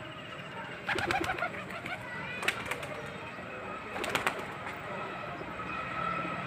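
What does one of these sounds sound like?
Pigeons flap their wings loudly as they land close by.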